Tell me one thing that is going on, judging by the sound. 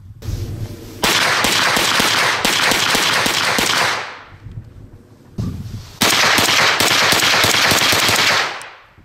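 A rifle fires rapid bursts outdoors.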